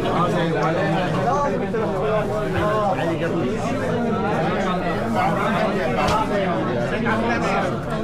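A crowd of men talk and greet each other at close range.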